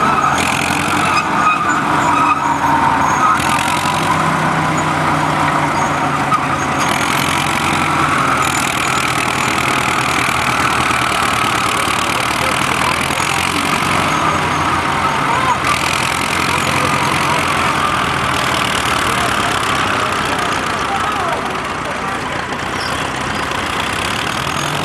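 Crawler tracks clank and squeal as a tractor pushes soil.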